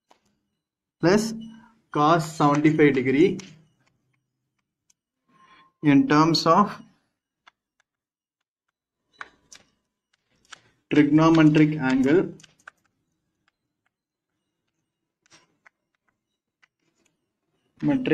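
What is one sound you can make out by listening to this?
A man speaks calmly, as if explaining, in short bursts close by.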